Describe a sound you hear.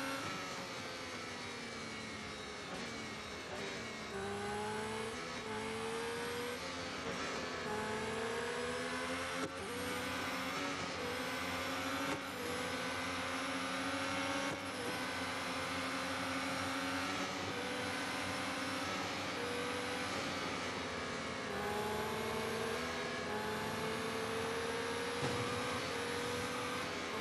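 A racing car engine whines loudly, rising and dropping in pitch as it shifts gears.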